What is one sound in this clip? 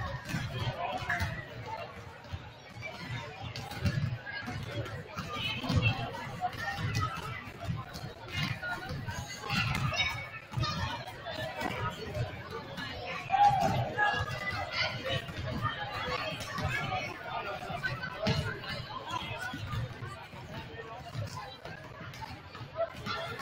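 Basketballs bounce on a wooden court.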